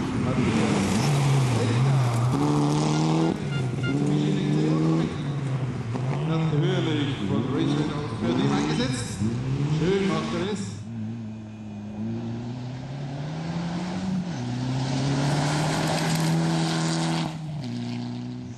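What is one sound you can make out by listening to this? Gravel sprays and crunches under a car's spinning tyres.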